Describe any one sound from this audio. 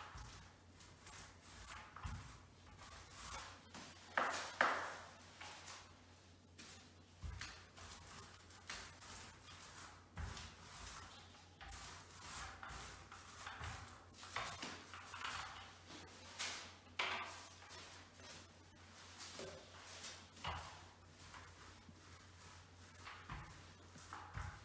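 A paint roller rolls wetly and softly across a wall, close by.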